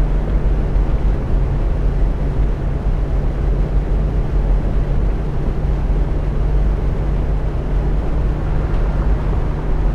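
Tyres roll on a road with a steady rumble.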